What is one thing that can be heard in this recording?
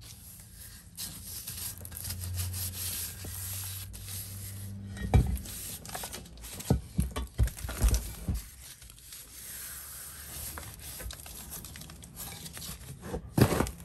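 Gloved hands rub and brush against chalky rocks.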